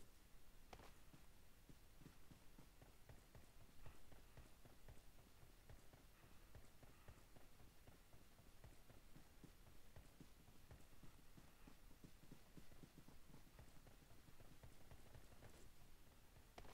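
Footsteps thud quickly on grass and dirt.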